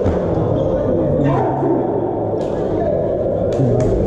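Young men cheer and shout together in celebration.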